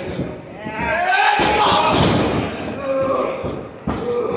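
A wrestler thuds down onto a wrestling ring's mat.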